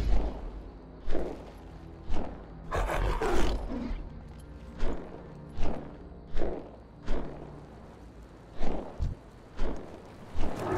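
Wings beat in regular whooshing flaps.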